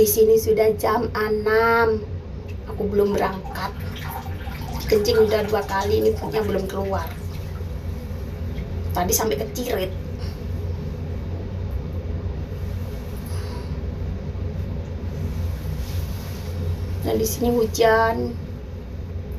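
A middle-aged woman speaks close by in short, lively bursts.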